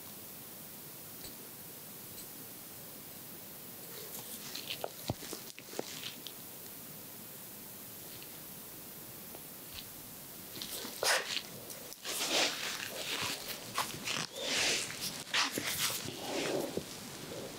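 Nail clippers click sharply, close by.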